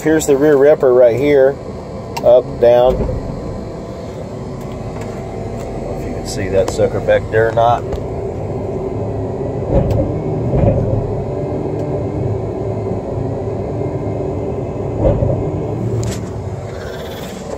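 A heavy machine's engine rumbles steadily up close.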